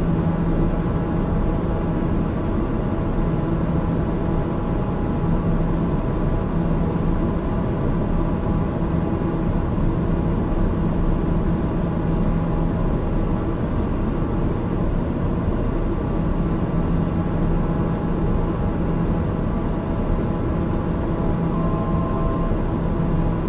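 A single-engine turboprop drones steadily in cruise, heard from inside the cockpit.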